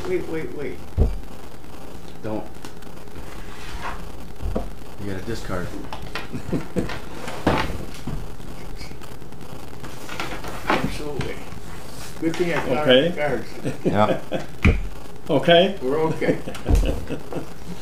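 Playing cards slap down onto a wooden table.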